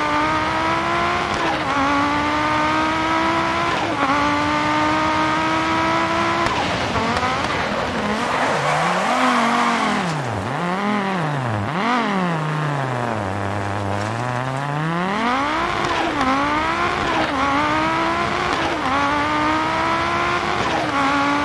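A racing car engine roars at high revs, shifting gears as it accelerates.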